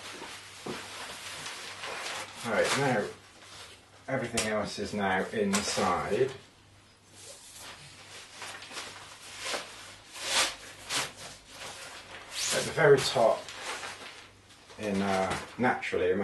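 Fabric rustles as a man unpacks a backpack.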